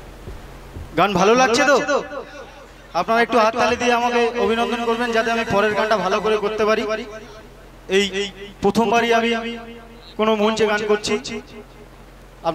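A young man sings loudly through a microphone and loudspeakers.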